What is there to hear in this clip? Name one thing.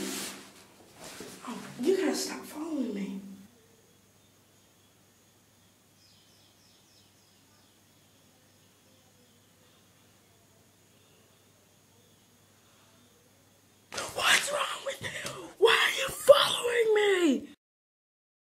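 A teenage boy talks close by, with animation.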